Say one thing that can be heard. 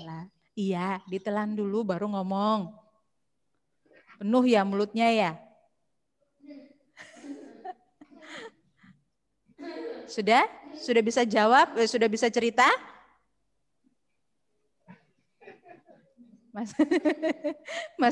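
A woman speaks brightly and with animation through a headset microphone.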